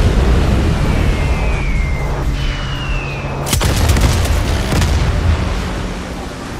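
A mounted machine gun fires in rapid bursts.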